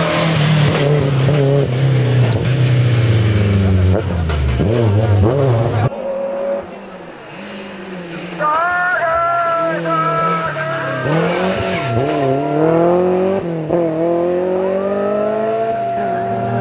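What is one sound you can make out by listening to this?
A race car engine roars loudly up close, revving hard through the gears.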